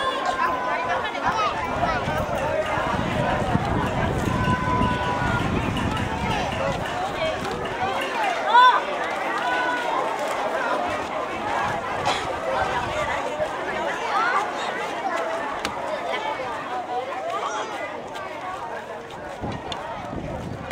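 A large crowd of men, women and children chatters outdoors.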